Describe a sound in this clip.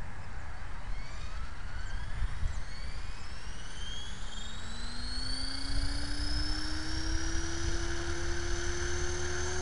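A model helicopter's motor whines and rises steadily in pitch as its rotor speeds up.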